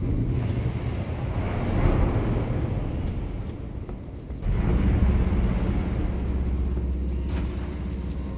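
Heavy footsteps crunch on gravel and stone.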